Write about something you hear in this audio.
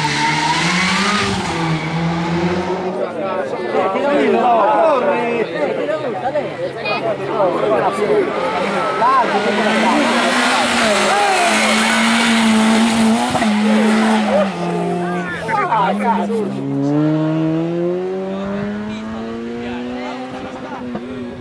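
A rally car engine roars and revs hard close by.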